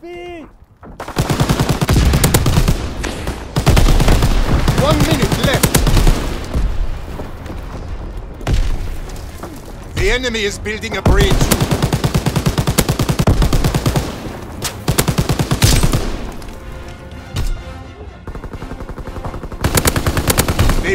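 A machine gun fires in rapid, rattling bursts.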